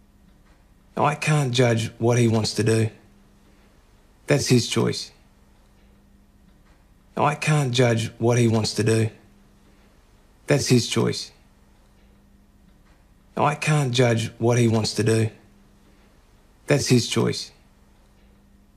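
A young man speaks calmly and earnestly at close range.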